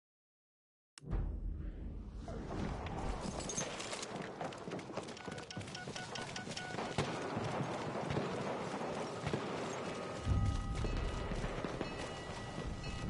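Gunfire and explosions rumble across a battlefield.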